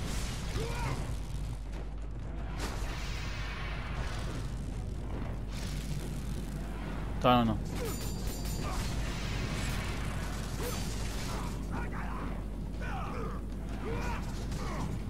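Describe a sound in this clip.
Blades swish and clash.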